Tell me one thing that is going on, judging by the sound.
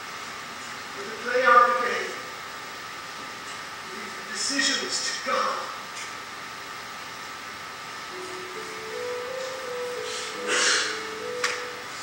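Adult actors speak with feeling on a stage, heard from a distance.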